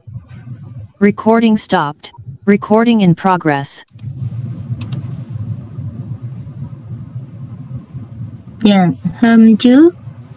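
A middle-aged woman speaks calmly through an online call microphone.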